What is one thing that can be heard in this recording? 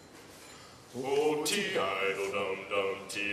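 A men's choir begins singing in harmony.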